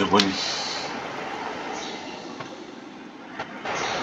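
Water flows and splashes steadily.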